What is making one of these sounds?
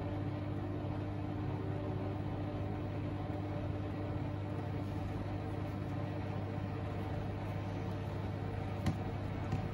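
Laundry tumbles and swishes in water inside a washing machine drum.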